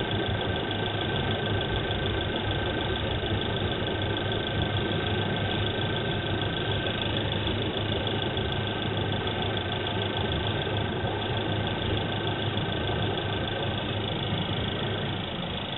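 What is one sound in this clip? A car engine idles nearby with a steady, even hum.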